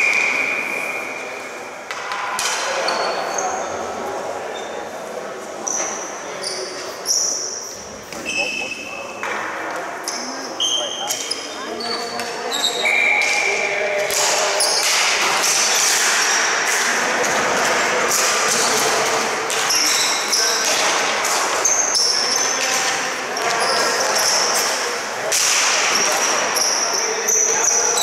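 Young players shout and call out across the hall.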